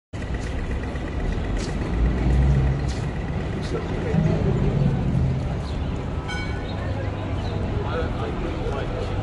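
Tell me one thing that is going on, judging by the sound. City traffic and street bustle hum steadily outdoors.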